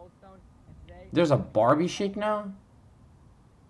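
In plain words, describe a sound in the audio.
A young man talks loudly and excitedly into a phone.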